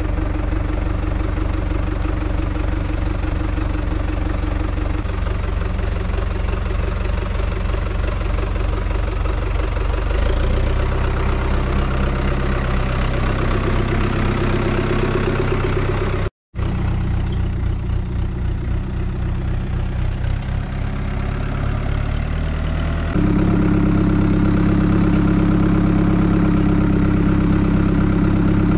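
A tractor engine runs with a steady, low diesel rumble.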